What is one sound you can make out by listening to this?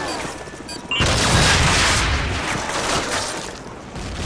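A rocket launcher fires with a loud whoosh and roar.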